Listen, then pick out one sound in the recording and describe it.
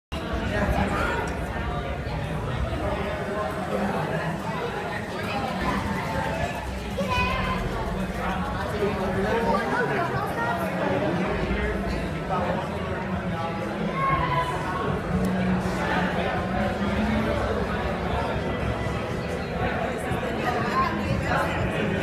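A crowd of people chatter throughout a large echoing hall.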